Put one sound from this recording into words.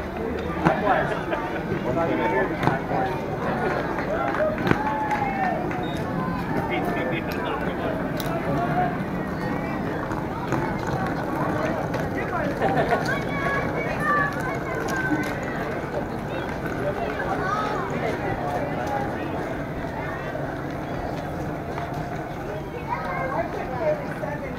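A crowd of men and women chatter outdoors in a mix of voices.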